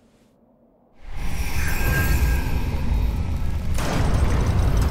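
A deep, roaring magical surge swells and stays loud.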